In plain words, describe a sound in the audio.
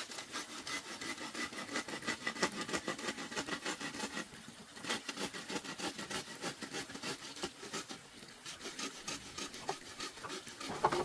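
A machete chops rapidly at wood.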